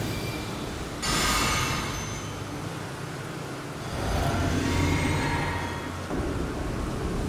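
A magical spell shimmers and rings.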